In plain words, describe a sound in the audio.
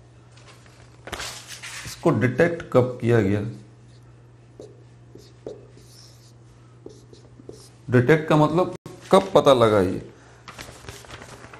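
Paper sheets rustle.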